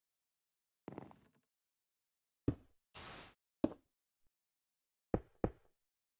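Blocks are placed with short soft thuds.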